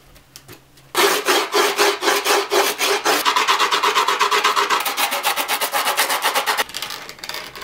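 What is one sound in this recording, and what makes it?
A file scrapes along the edge of a skateboard's grip tape.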